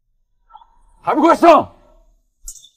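A young man speaks sharply and urgently nearby.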